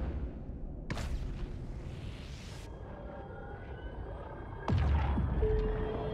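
A spaceship in a video game rumbles as it warps away.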